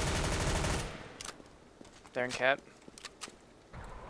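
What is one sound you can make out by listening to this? A gun magazine clicks as it is reloaded.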